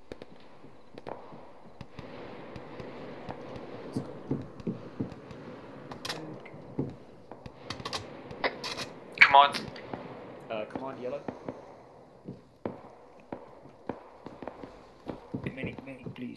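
Gunshots crack and pop repeatedly at a distance, outdoors.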